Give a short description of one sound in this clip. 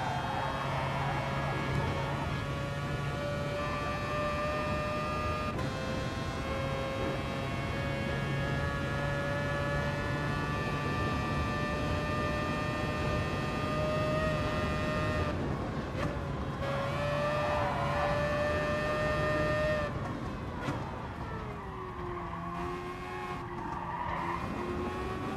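A racing car engine roars at high revs, its pitch climbing and dropping with each gear change.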